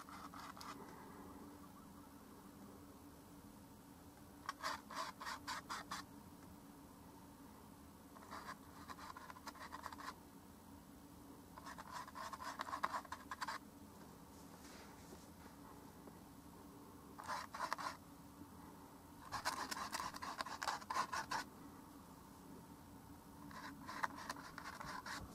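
A brush strokes softly on canvas.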